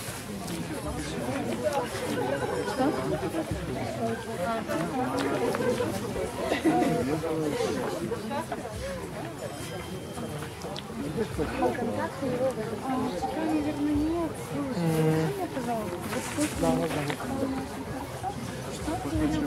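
Several men and women talk and chatter outdoors, a short way off.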